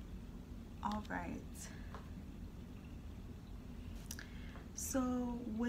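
A young woman speaks calmly and close by, in short bursts with pauses.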